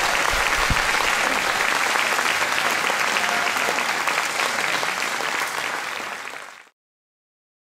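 A large audience applauds loudly in a large hall.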